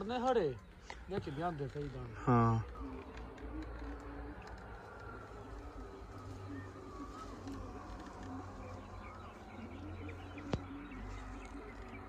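Leaves rustle softly in a light breeze.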